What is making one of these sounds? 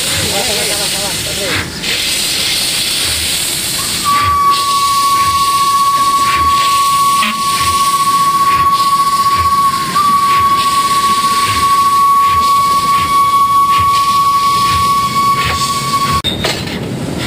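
A small narrow-gauge steam tank locomotive chuffs as it moves along the track.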